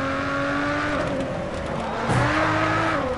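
Car tyres screech through a corner.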